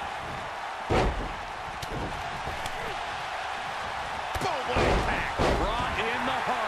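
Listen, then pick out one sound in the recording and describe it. Heavy bodies slam onto a wrestling ring mat with loud thuds.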